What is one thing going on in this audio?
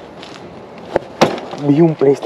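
A stick taps sharply on a hard plastic board.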